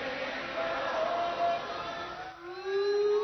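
A large crowd cheers.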